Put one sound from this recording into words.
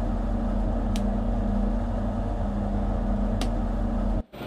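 A switch clicks sharply.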